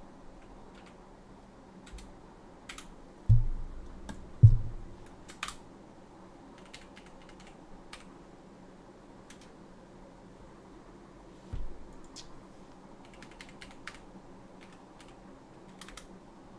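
Cardboard packaging rustles and taps close to a microphone.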